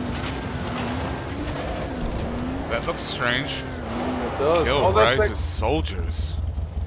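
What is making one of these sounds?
A buggy engine drones and rumbles steadily.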